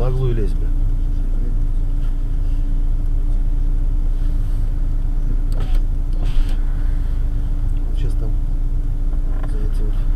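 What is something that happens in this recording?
Cars drive past slowly on a snowy road.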